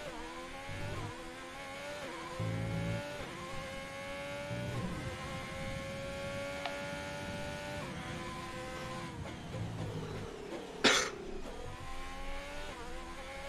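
A racing car engine roars, rising in pitch and dropping with each gear change.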